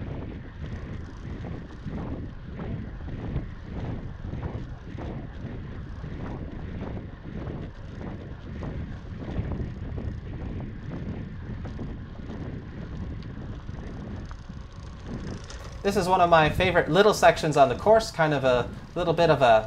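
Bicycle tyres roll steadily over a paved path.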